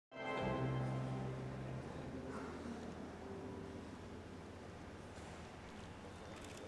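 A small string band plays a ringing chord that slowly fades in a large echoing hall.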